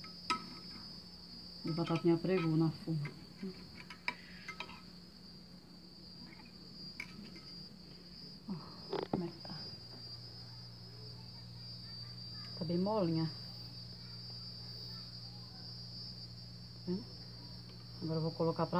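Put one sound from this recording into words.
A fork scrapes and taps against a glass dish.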